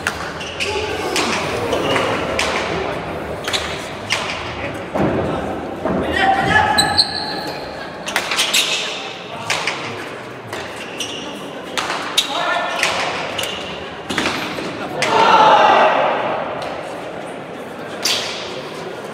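A hard ball smacks against a wall and echoes in a large hall.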